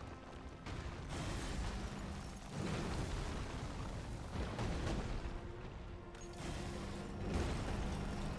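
A huge beast slams into the ground with heavy thuds.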